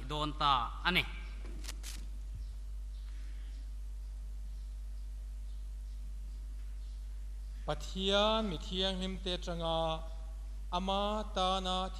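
A man chants slowly in a low, steady voice.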